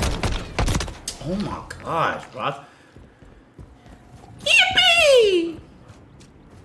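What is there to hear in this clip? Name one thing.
A young man speaks with animation into a microphone, then shouts.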